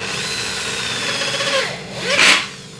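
A power drill whirs, driving a screw into metal.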